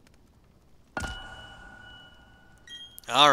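A short game jingle plays.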